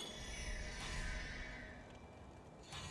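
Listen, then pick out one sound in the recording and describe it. A sword strikes metal with a ringing clang.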